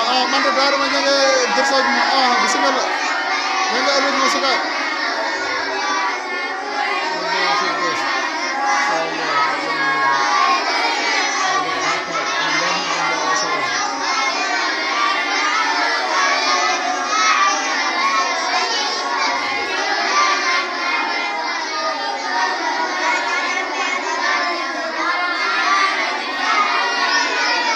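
A crowd of children chatter and talk loudly all at once, close by in an echoing room.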